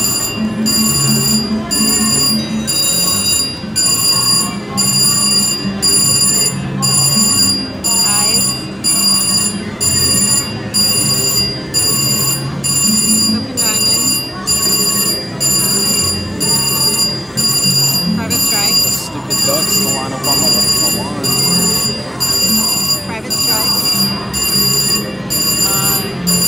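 Electronic jingles and tones play from a slot machine.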